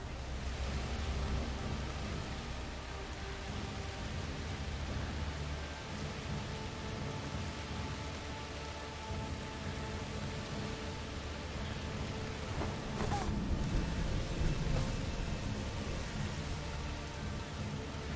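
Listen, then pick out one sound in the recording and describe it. Small waves wash gently against a rocky shore.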